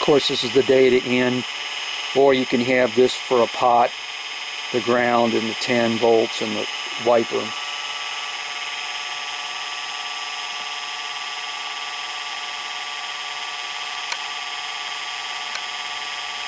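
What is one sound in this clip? An electric motor runs with a steady high whine.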